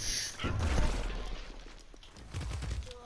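A powerful blast booms and debris scatters.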